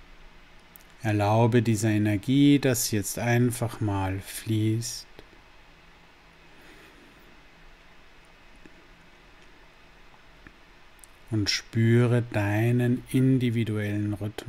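A middle-aged man speaks calmly and softly, close to the microphone, with long pauses.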